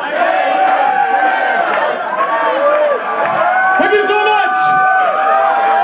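A rock band plays loudly in a hall.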